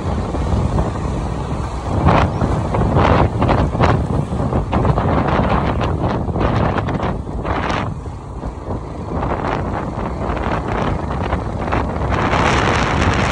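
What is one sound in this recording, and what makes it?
Wind rushes and buffets against a microphone on a moving motorcycle.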